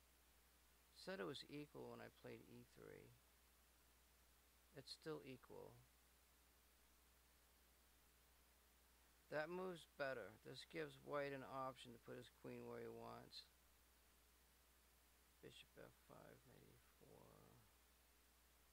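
A man talks calmly and closely into a microphone, in short bursts with pauses.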